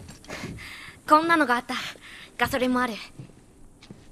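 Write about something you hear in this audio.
A girl speaks brightly.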